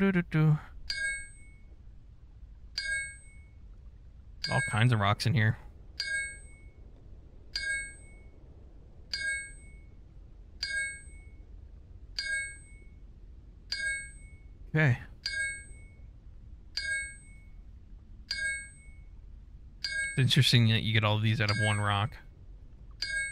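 A pickaxe strikes rock again and again with a ringing clink.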